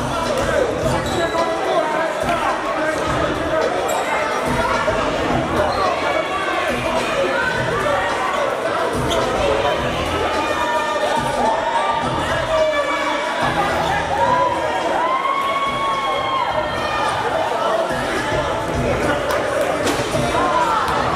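A crowd chatters and calls out in a large echoing gym.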